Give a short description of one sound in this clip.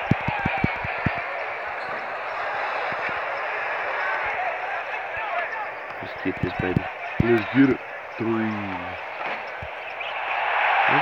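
A crowd cheers and murmurs steadily in a large arena.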